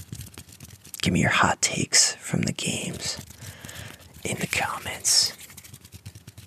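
A young man whispers closely into a microphone.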